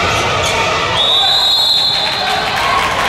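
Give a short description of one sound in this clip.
A referee's whistle blows once.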